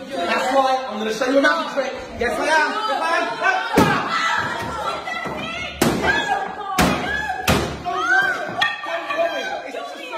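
Young women scream and gasp.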